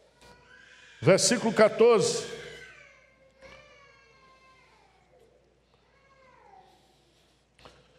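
A middle-aged man speaks steadily through a microphone in a large, echoing hall.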